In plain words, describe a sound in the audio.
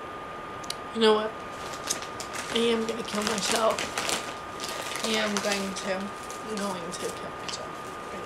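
A young woman talks casually into a phone microphone.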